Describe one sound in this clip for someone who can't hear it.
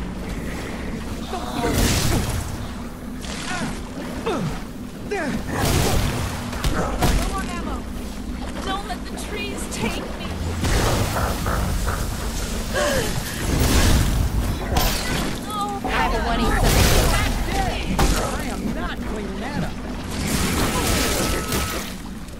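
Magic blasts crackle and whoosh in sudden bursts.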